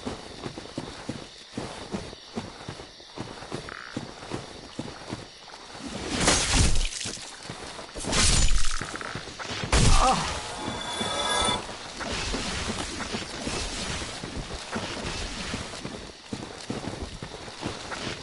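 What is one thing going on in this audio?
Armoured footsteps clank steadily on the ground.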